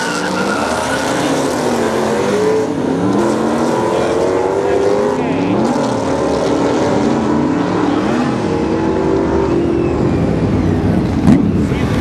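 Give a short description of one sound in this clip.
V8 Mustangs accelerate hard down a drag strip, shifting up through the gears.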